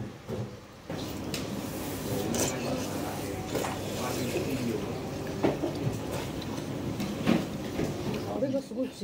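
A person slurps noodles from a spoon.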